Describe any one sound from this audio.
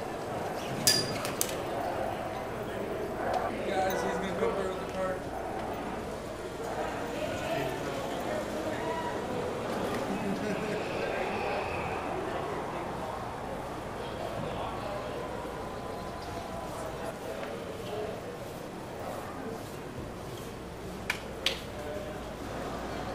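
A crowd of men and women chatters in the background of an echoing corridor.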